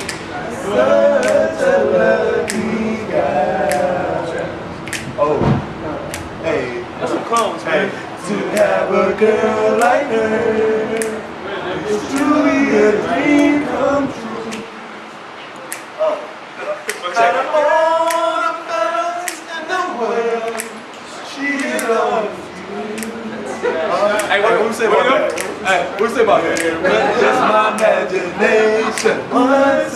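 Several young men sing together loudly and energetically close by.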